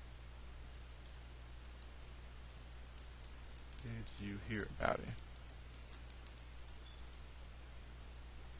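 Keys on a keyboard click and clatter in quick bursts.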